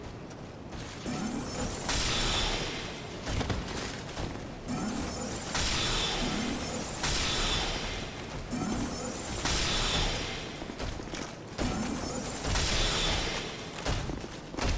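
Magic bolts whoosh and crackle as they are cast again and again.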